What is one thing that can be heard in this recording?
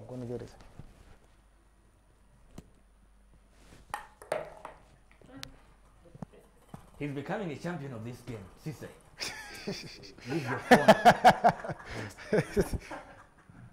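A ping-pong ball bounces with light taps on a hard floor.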